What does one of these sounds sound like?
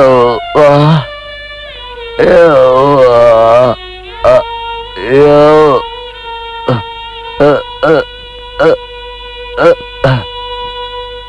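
A man cries out in pain and moans loudly.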